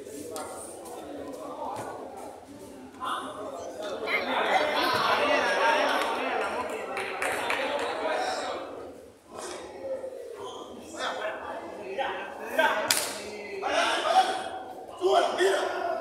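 Men shout and call out to each other, with lively voices at a distance.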